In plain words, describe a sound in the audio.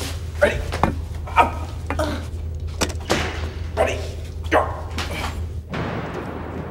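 Bodies thump and scuffle in a close struggle.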